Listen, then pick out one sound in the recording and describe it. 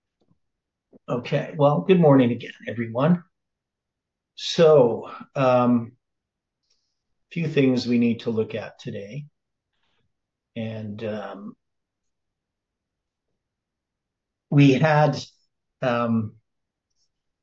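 A middle-aged man talks calmly into a microphone, heard close up through an online call, pausing between phrases.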